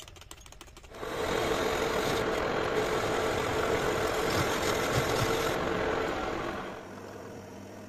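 A metal lathe's cutting tool shaves a spinning steel bar with a steady scraping hiss.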